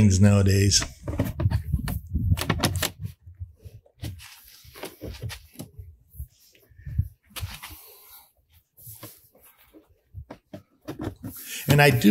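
Plastic pieces click and knock together.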